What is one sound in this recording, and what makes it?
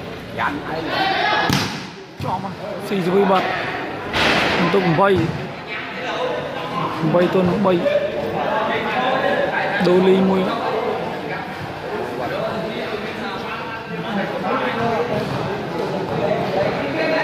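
A crowd of men talk and call out in a large echoing hall.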